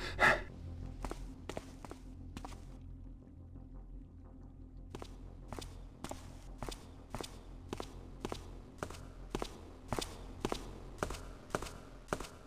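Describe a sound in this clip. Footsteps tread steadily on a stone floor.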